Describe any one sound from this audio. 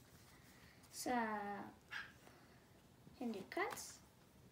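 A boy speaks close by, calmly and clearly.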